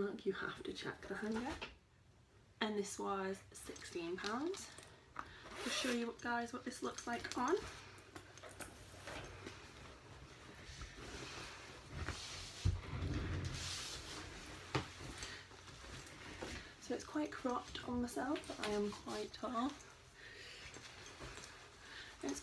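Fabric rustles as clothing is handled.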